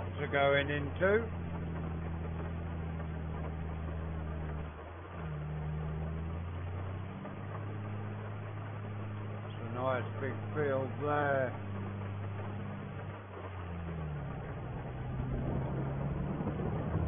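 A tractor engine hums steadily, its pitch shifting now and then.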